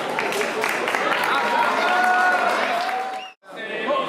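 People clap their hands along.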